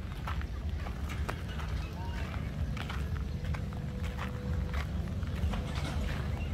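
A dog's paws patter on pavement.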